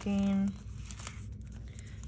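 A sticker peels off a backing sheet.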